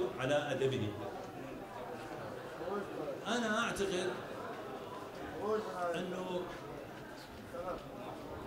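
An elderly man speaks calmly into microphones, in bursts with pauses.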